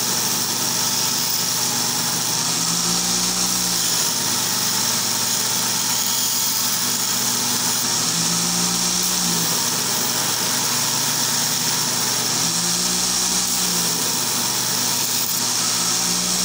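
A belt grinder whirs steadily.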